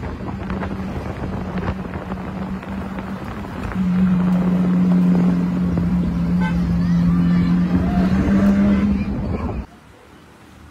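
A sports car engine roars as it drives along a street.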